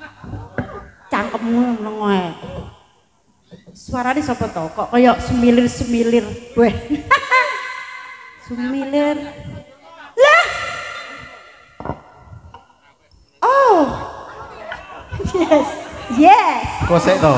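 A woman sings through a microphone over a loudspeaker.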